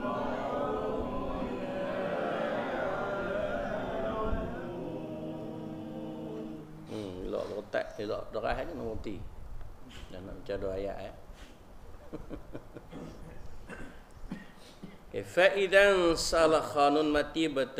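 An elderly man speaks steadily into a microphone, at times reading out in a sing-song tone.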